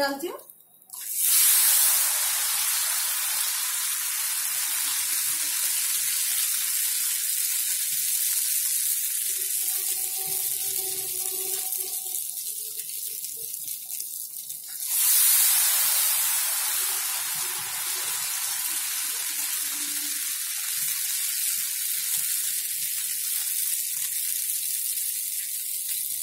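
Batter poured into hot oil sizzles and crackles.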